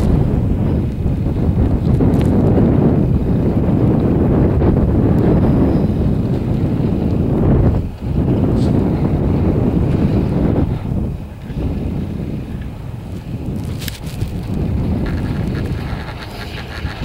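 Wind buffets loudly outdoors with a low, gusty rumble.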